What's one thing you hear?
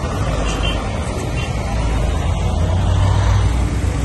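A bus engine rumbles as it drives past.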